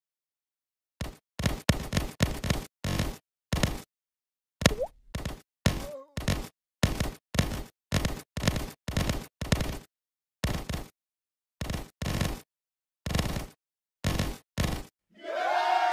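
Quick electronic shots pop in bursts.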